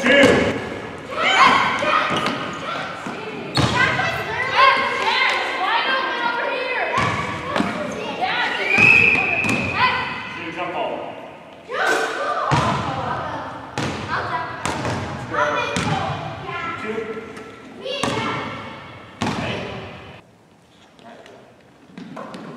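A ball bounces on a hard wooden floor.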